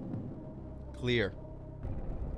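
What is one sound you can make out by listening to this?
A young man exclaims loudly with a rising voice.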